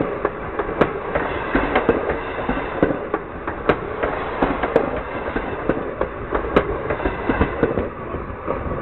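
Train wheels clatter and clank over rail joints close overhead.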